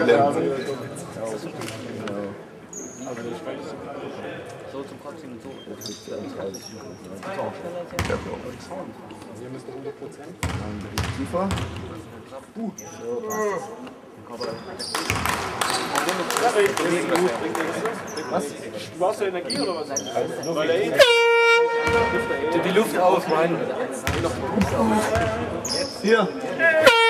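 Players and spectators talk and call out in a large echoing hall.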